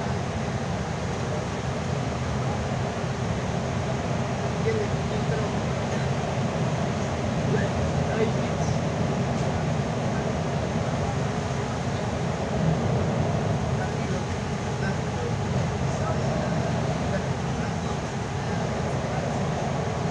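A bus engine hums steadily from inside the cabin.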